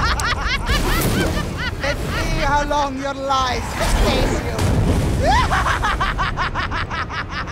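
An elderly woman laughs and shouts with a harsh, echoing voice.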